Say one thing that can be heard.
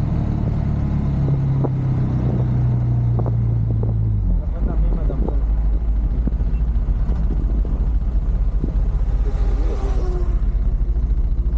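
A young man talks inside a helmet, muffled by the wind.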